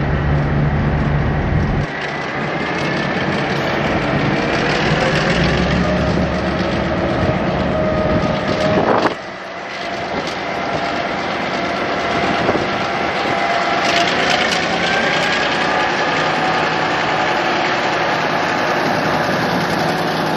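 A diesel locomotive engine rumbles loudly as a train pulls slowly past.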